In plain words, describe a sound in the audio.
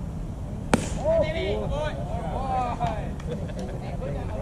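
Young men shout and cheer from a distance.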